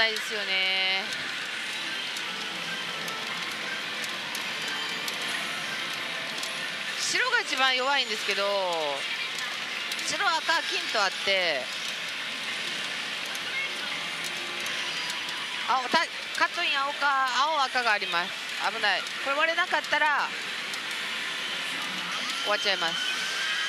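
A pachinko machine plays busy electronic music and jingles.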